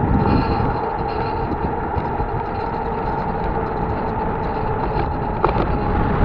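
Car tyres roll along an asphalt road with a low rumble.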